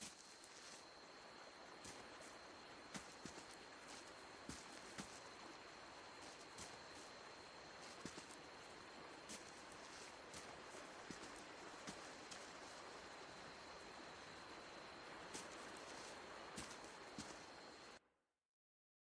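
Footsteps tread softly on grass and stone.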